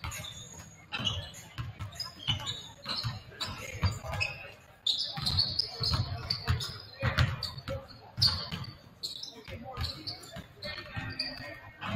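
Basketballs bounce repeatedly on a hardwood floor in a large echoing gym.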